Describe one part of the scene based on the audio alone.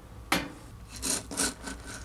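Coffee beans rattle and scrape as a spatula stirs them in a pan.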